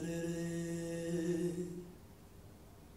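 A woman sings a long held note that fades away.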